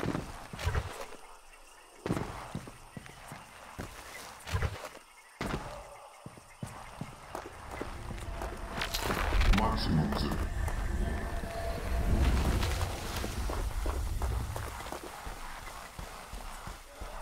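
Footsteps crunch over loose stones and gravel.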